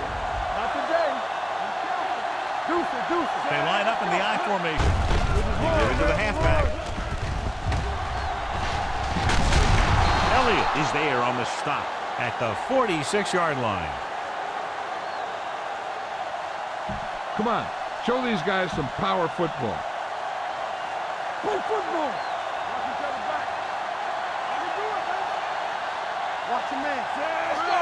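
A stadium crowd roars steadily, swelling louder during a play.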